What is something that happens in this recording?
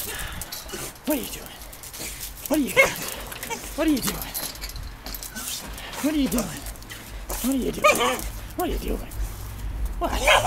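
A small dog barks in sharp, repeated yaps.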